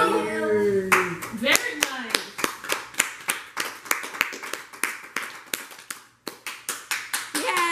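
Several people clap their hands quickly.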